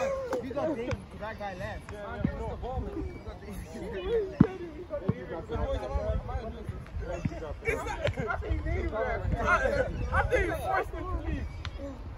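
A basketball bounces on asphalt.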